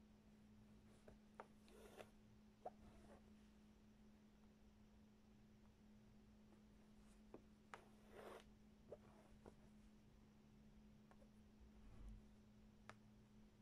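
A needle taps and pokes through taut fabric.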